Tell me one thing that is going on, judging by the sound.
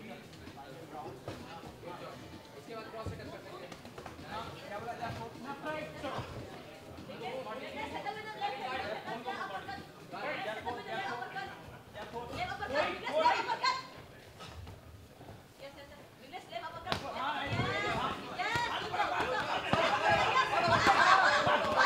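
Gloved punches thud against a body.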